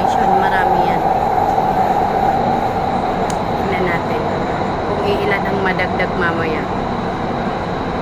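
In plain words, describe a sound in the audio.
A young woman talks casually, close by.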